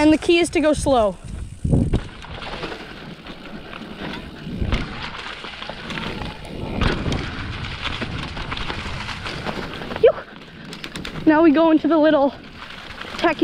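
Bicycle tyres roll and crunch over dry leaves on a dirt trail.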